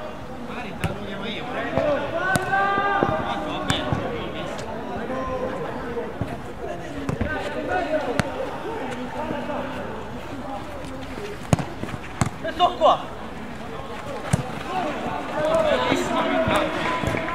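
A ball is kicked with sharp thuds on artificial turf.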